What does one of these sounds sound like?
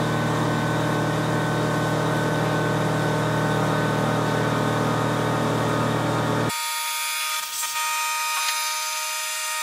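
A milling cutter whines steadily as it cuts into metal.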